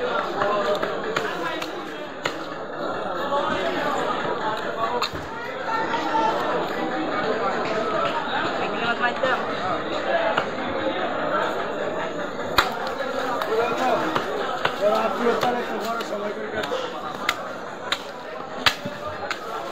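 A cleaver knocks against a wooden block.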